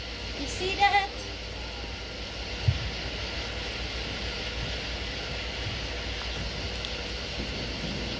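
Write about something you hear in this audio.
A sparkler fizzes and crackles steadily.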